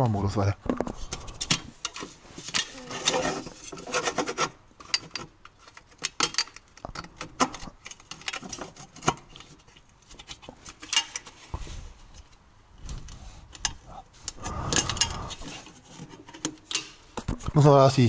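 A rubber hose scrapes and knocks as it is pushed onto a pipe.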